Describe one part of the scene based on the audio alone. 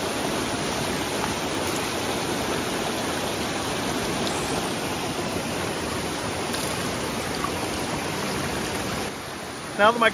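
A stream rushes and splashes nearby.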